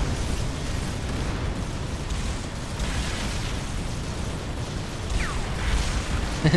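Heavy engines rumble low and steady.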